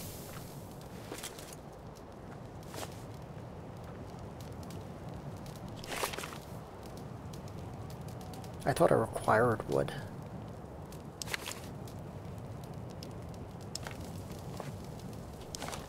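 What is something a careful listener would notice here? A campfire crackles and hisses steadily.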